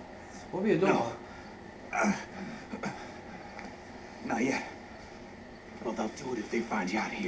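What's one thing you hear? A young man speaks into a microphone in short, startled bursts.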